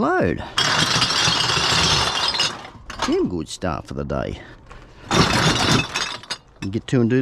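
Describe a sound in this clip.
Glass bottles clink and rattle against each other.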